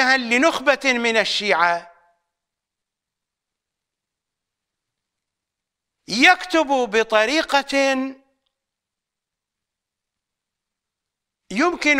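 An elderly man speaks with animation into a close microphone, pausing between phrases.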